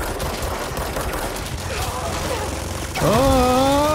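A pistol fires rapid, sharp shots.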